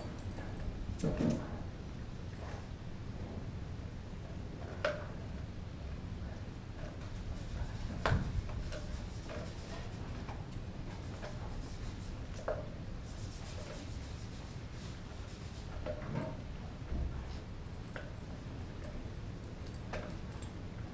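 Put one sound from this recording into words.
A dog chews and gnaws on a bone with wet crunching sounds.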